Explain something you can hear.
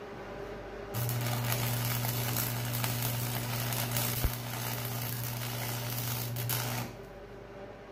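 An electric welder buzzes and crackles steadily.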